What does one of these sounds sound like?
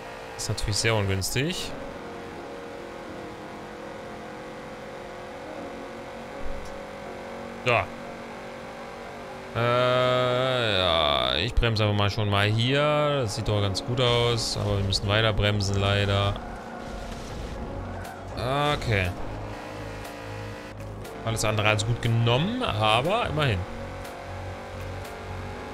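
A car engine hums steadily as it races.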